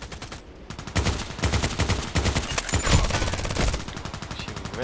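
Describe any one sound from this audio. An assault rifle fires rapid bursts of gunshots.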